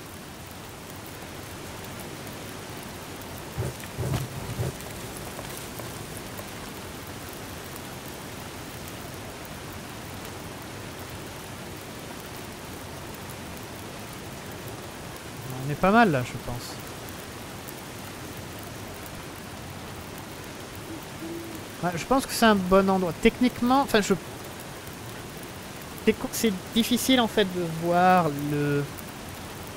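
A campfire crackles and hisses softly.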